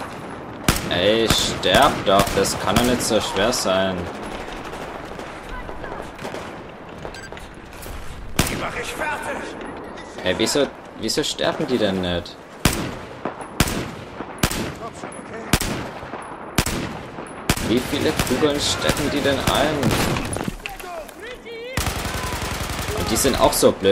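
Rifle shots crack out one at a time, close by.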